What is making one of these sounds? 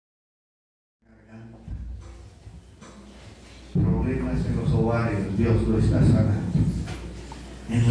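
A man preaches loudly and with fervour into a microphone through loudspeakers in an echoing hall.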